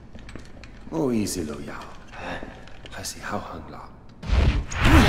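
A young man speaks in a low voice.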